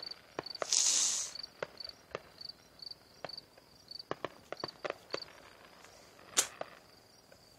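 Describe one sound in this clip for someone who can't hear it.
Fireworks bang and crackle in the distance, sharp pops coming one after another.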